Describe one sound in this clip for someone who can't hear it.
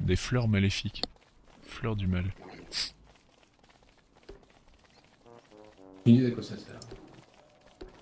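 Pigs grunt nearby.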